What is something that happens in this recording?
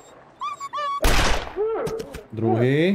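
A revolver fires a single loud shot.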